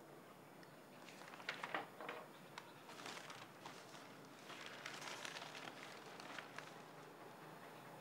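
Paper pages rustle as a man turns a newspaper.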